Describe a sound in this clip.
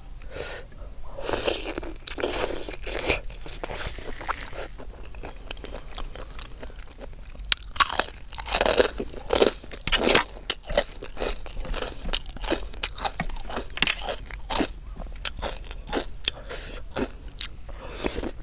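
A young woman chews and smacks her lips close up.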